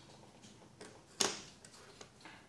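A circuit board clatters as it is set down on a table.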